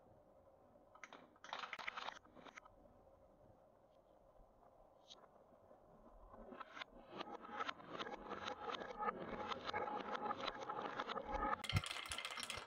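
Glass marbles roll and rattle around a wooden spiral track.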